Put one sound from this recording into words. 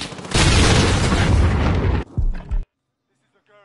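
A loud explosion roars and crackles.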